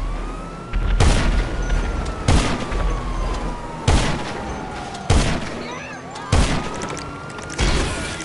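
A rifle fires loud, sharp shots every second or so, each with a short echo.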